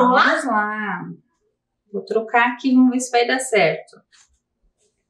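A woman speaks clearly and with animation into a microphone.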